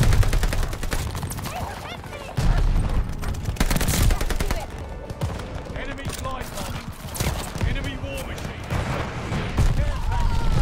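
Rapid gunshots crack in quick bursts.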